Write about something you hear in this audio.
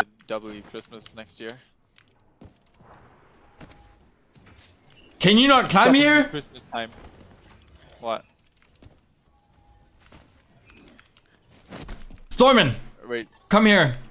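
A young man talks into a microphone in short bursts.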